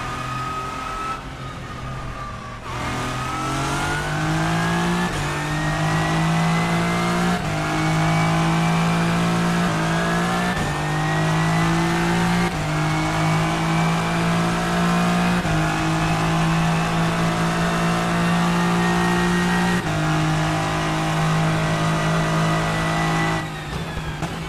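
A racing car engine roars loudly, climbing in pitch and dropping with each gear change.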